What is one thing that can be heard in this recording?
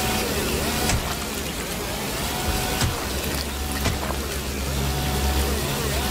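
Creatures burst with wet, squelching splatters.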